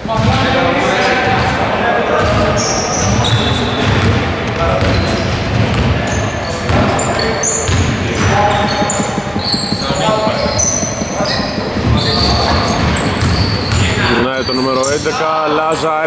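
Young men call out to each other in a large echoing hall.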